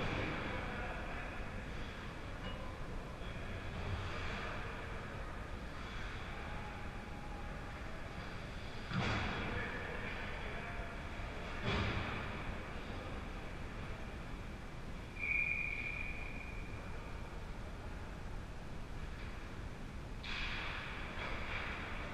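Skates scrape and hiss on the ice in a large echoing rink.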